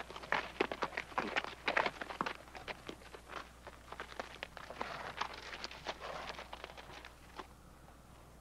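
Horse hooves clop on hard dusty ground.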